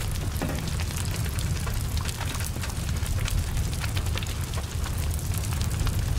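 A car fire roars steadily.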